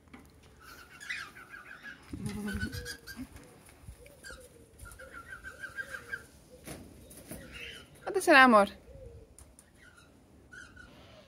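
A cockatiel chirps nearby in short repeated bursts.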